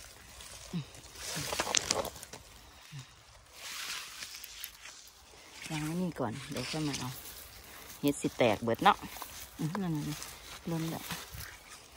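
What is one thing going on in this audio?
Fir branches rustle and scrape as a hand pushes through them.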